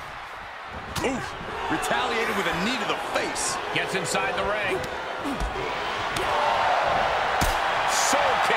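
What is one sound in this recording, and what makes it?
Heavy body slams thud.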